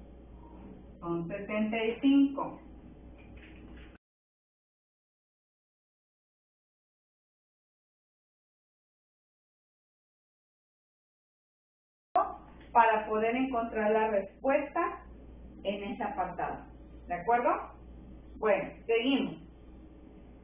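A woman explains calmly, close to a microphone.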